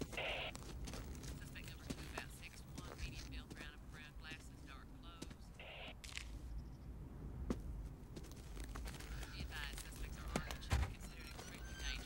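A man's footsteps crunch on gravel.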